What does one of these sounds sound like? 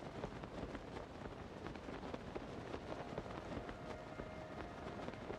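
Wind rushes steadily past during a glide through the air.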